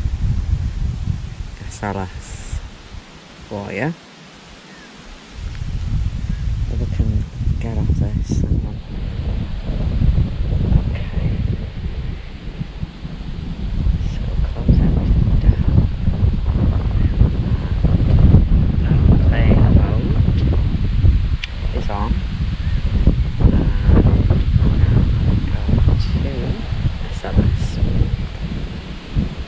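Strong wind gusts and rumbles outdoors.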